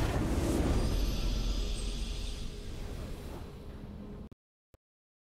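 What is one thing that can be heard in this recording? A triumphant game fanfare rings out and slowly fades.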